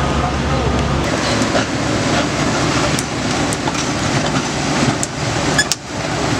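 Excavator tracks clank and rattle on the ground.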